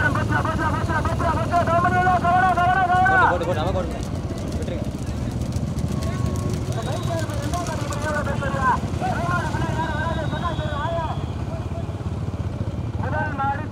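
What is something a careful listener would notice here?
Motorbike engines hum and rumble as they ride past.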